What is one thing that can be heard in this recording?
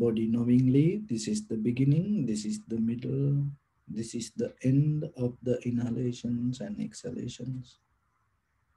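A man speaks calmly and slowly into a close microphone.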